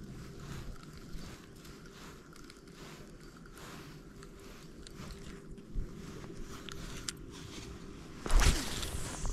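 A fishing reel clicks steadily as it is wound.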